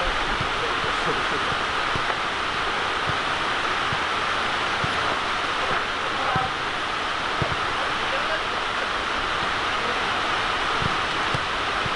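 A football is kicked back and forth on grass outdoors.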